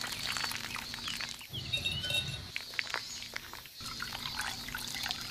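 Thick liquid pours into a glass.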